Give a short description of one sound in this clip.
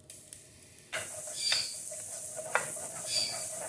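A fire crackles beneath a stove.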